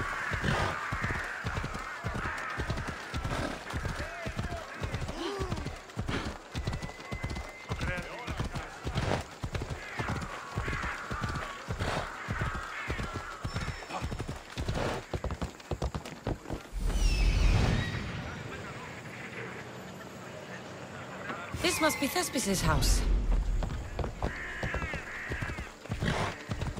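A horse's hooves clop quickly and steadily on hard ground.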